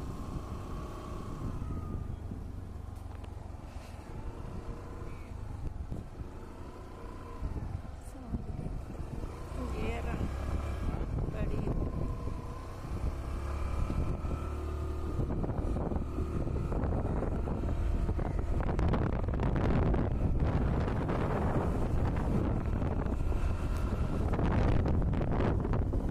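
A motorcycle engine hums steadily as it rides along.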